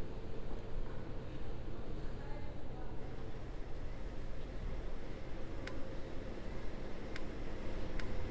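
A train rumbles steadily along rails through a tunnel.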